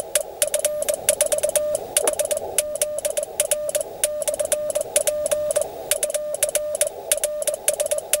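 A telegraph key clicks rapidly under a man's hand.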